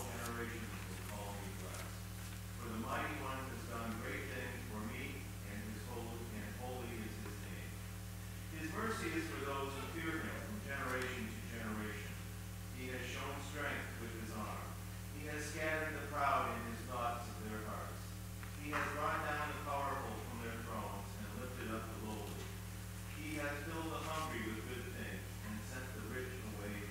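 An elderly man reads aloud calmly, heard in a reverberant hall.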